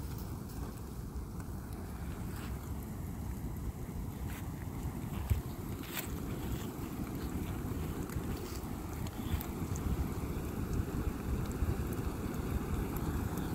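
Burning wood crackles and pops.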